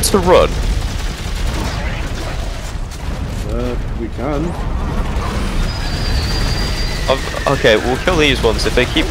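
A futuristic gun fires with sharp electric zaps.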